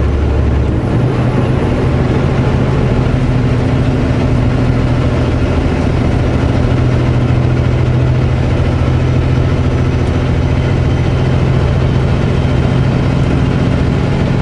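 A truck's diesel engine drones steadily from inside the cab.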